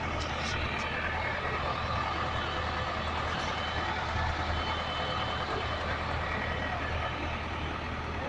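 A fire engine's engine idles nearby.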